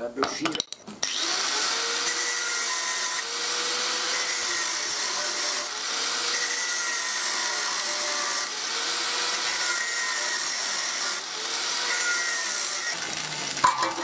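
An angle grinder whines loudly as it cuts through metal.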